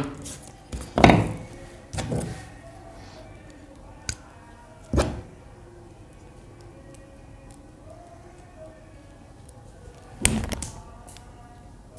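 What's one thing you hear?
Objects knock against a table.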